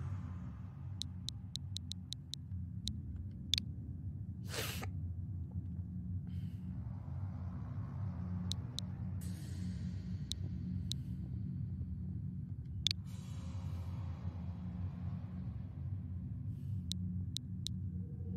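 Short electronic beeps tick as menu keys are selected.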